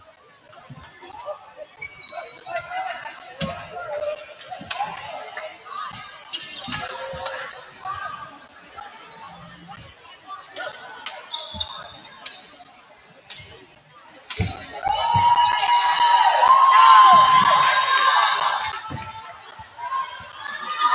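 Players call out to each other in a large echoing hall.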